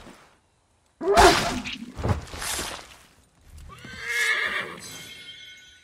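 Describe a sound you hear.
An elk cries out loudly.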